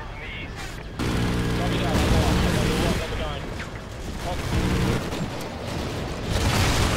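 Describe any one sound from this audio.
Explosions boom one after another.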